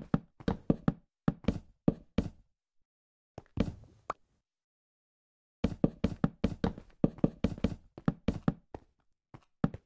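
Wooden blocks knock as they are placed one after another.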